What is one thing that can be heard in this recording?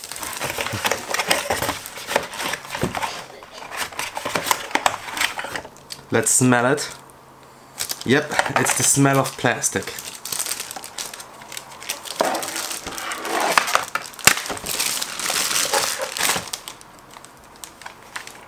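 Cardboard and plastic wrapping rustle and crinkle close by.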